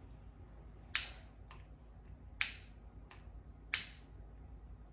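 A lighter clicks a few times.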